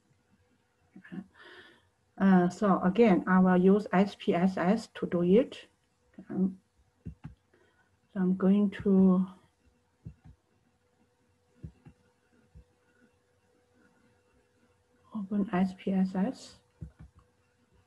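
A woman talks calmly into a close microphone, with pauses.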